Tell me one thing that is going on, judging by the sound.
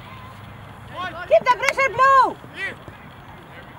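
Young men shout loudly across an open field.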